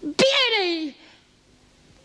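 An elderly woman laughs loudly and exclaims nearby.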